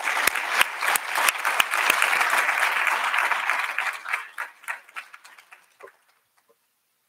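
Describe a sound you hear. An audience applauds in a large hall and the clapping fades out.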